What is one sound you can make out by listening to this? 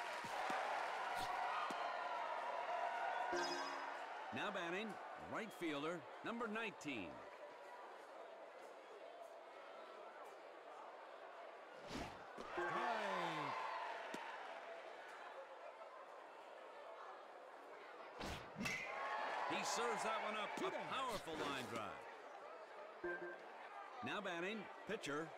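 A large crowd cheers and murmurs throughout.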